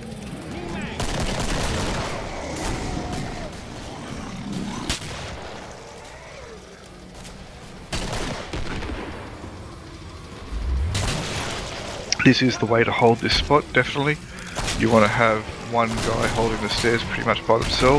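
Gunshots ring out in short bursts.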